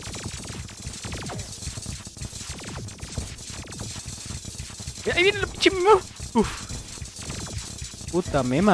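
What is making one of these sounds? Rapid electronic shots and hit sounds crackle steadily.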